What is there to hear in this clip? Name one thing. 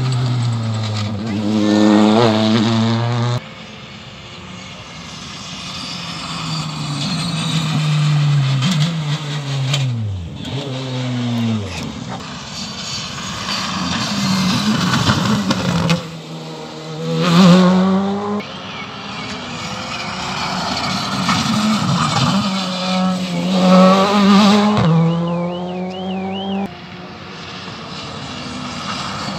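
Rally car engines roar and rev hard, passing close by one after another.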